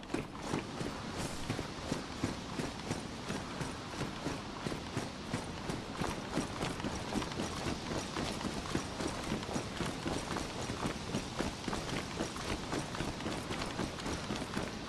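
Footsteps crunch on grass and dirt outdoors.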